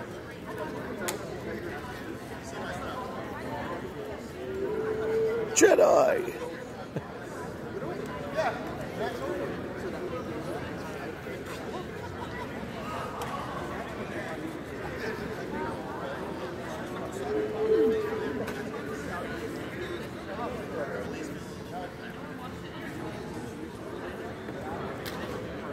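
Many voices chatter in a large echoing hall.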